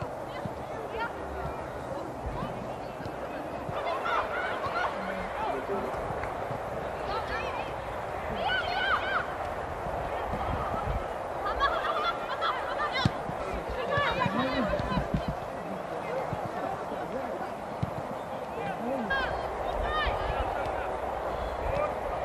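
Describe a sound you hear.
Young women players shout and call to each other across an open outdoor pitch.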